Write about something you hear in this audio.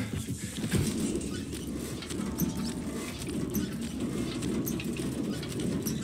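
Hands grip and slide on a metal pipe while climbing.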